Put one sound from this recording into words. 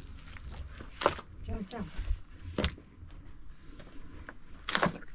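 A shovel scrapes and digs into dry soil.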